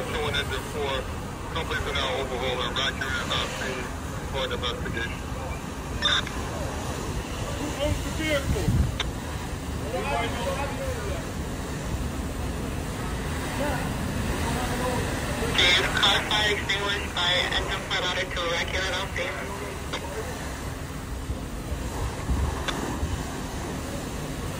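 A fire hose sprays water with a steady hiss.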